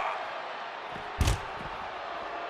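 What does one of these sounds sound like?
A punch lands with a heavy thud.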